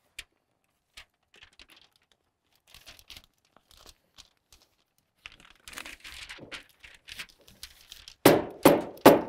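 Stiff paper wrap crinkles and rustles as hands fold it.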